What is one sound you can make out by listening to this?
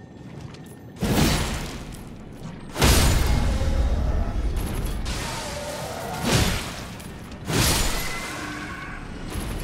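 Heavy blows land with loud crashes and thuds.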